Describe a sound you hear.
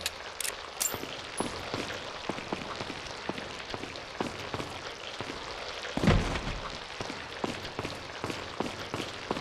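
Footsteps tread on a stone floor in an echoing hall.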